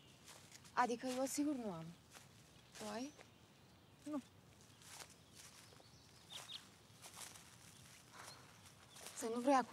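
Footsteps crunch on a forest path.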